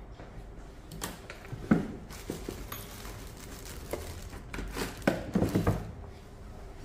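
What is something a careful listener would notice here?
Tools clatter on a hard counter.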